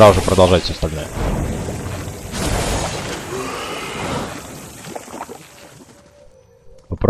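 Magic spells whoosh and crackle in a game battle.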